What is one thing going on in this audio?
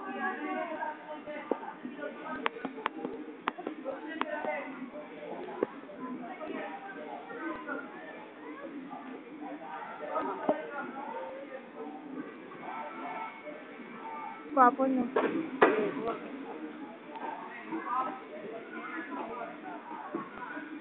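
A crowd of people talk and call out nearby in a lively hubbub.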